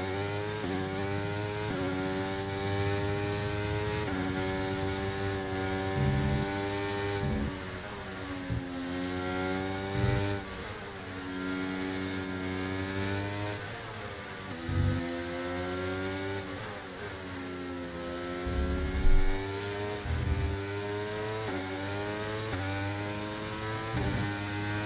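A racing car engine whines loudly, rising and dropping in pitch as it shifts through gears.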